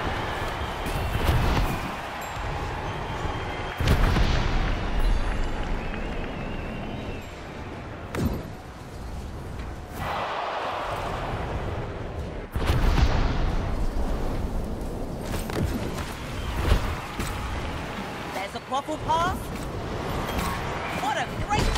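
Wind rushes and whooshes past in bursts.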